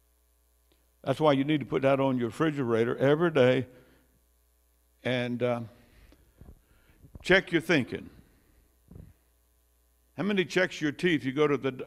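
An elderly man preaches with animation through a microphone, in bursts with pauses.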